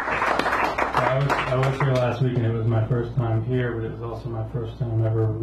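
A young man speaks calmly into a microphone, heard over a loudspeaker.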